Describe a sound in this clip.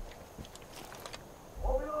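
A gun's parts click during reloading.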